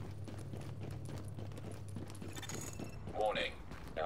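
Footsteps thud on stone stairs.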